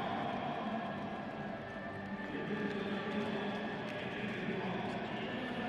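Players clap hands in high fives.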